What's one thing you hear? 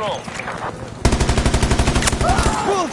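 A rifle fires a fast burst.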